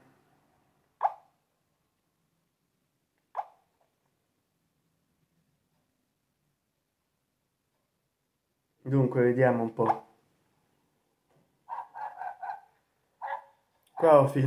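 A mobile phone gives short electronic beeps.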